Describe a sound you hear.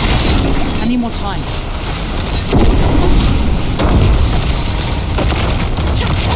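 Magic spell effects whoosh.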